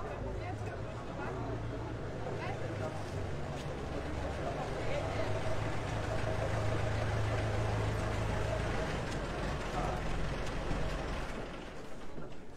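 A vintage car engine rumbles and chugs as the car drives up and stops.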